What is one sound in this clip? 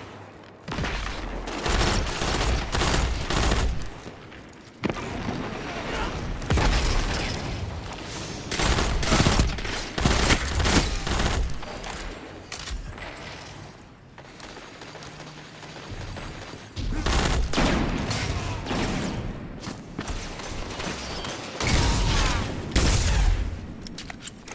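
Rifle shots fire in quick bursts, loud and close.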